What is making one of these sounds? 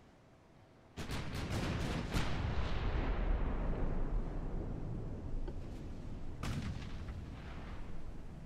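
Heavy naval guns fire in loud booming volleys that slowly fade.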